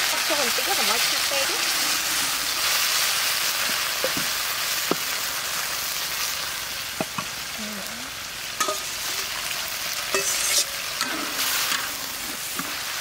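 Liquid pours into a pan.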